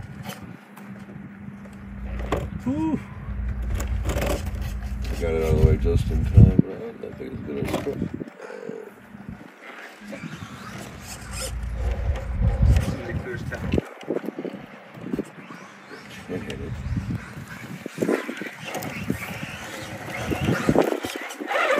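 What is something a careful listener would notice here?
Plastic tyres scrape and knock against stone.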